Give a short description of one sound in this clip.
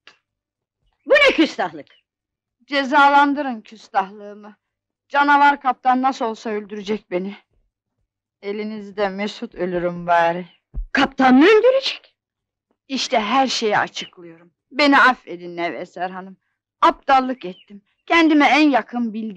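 A middle-aged woman speaks quietly and close by.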